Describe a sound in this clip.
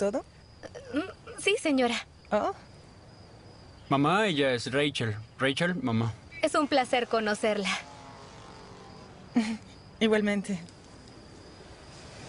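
A young woman talks cheerfully nearby.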